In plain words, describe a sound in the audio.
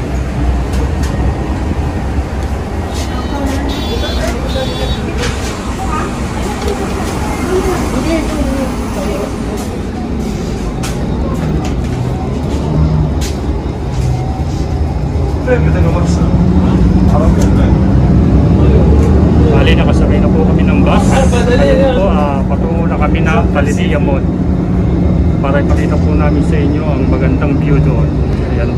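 A bus engine rumbles steadily and grows louder as the bus speeds up.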